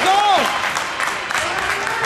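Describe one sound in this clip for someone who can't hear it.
Young men on a bench cheer and shout.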